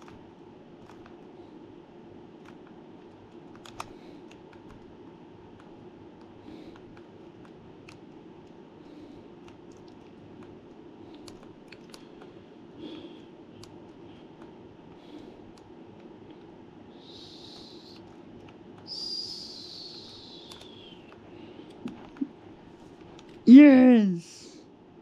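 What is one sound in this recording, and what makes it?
Buttons on a handheld console click softly under a thumb.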